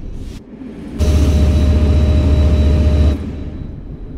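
A train horn blasts loudly.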